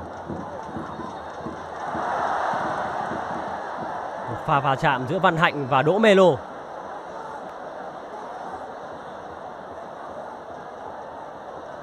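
A large crowd roars and chants in a stadium.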